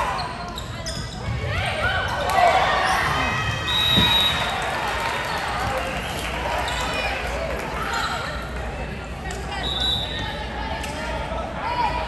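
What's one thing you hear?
A volleyball is struck with a hollow smack.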